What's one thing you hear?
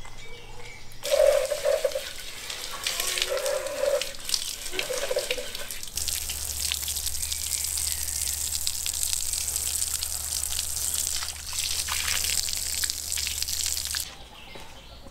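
Water sprays hard from a hose and splashes onto a surface.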